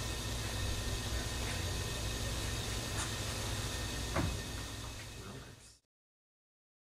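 A man speaks into a microphone across a large room.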